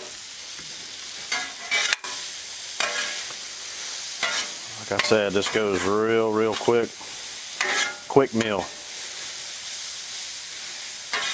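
Food sizzles steadily on a hot griddle.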